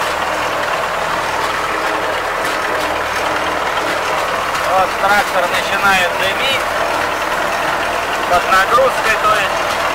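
A tractor rattles and bumps over a field.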